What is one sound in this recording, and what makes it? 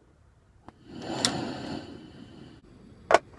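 A gas burner lights with a click and a soft roar.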